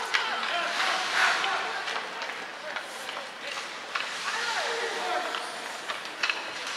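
Hockey sticks clack against pucks.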